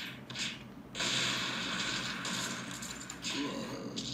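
An explosion bursts from a tablet game.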